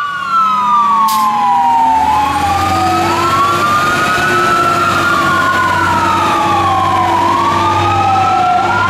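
A heavy fire truck engine rumbles as it drives past.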